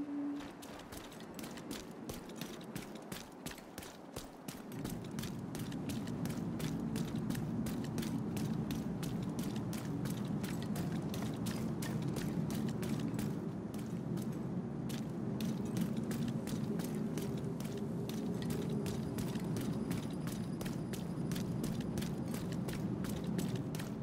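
Footsteps thud steadily on hard ground outdoors.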